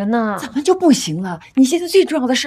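A middle-aged woman pleads tearfully, close by.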